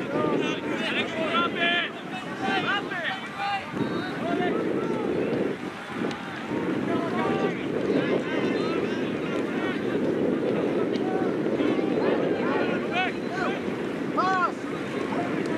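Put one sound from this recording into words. A crowd of spectators chatters and calls out outdoors at a distance.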